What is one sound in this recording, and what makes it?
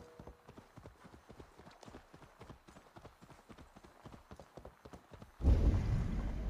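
Hooves clop steadily on the ground as a horse trots.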